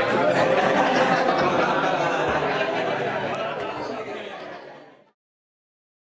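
A crowd of men and women chatter loudly in a room, then fades out.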